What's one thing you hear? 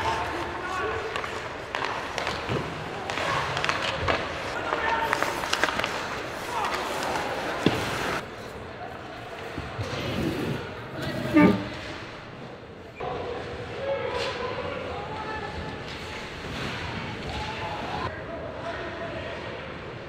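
A stick slaps a puck.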